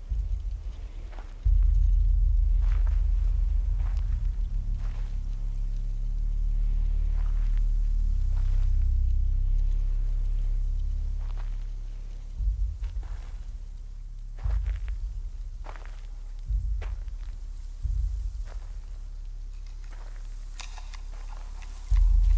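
Dry corn stalks rustle and crackle as a man pushes through them.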